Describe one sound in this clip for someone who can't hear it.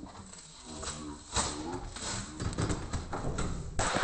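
A cardboard box rustles and scrapes as it is handled close by.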